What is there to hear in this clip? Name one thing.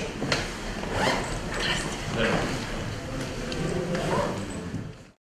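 Men talk and chatter nearby in a room with a slight echo.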